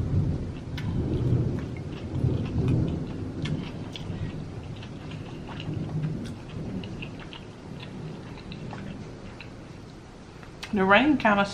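Crisp food crunches and crackles between teeth.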